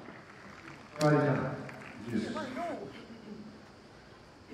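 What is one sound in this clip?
A crowd cheers and applauds after the point.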